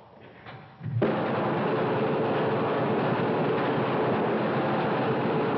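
An electrical machine crackles and buzzes loudly.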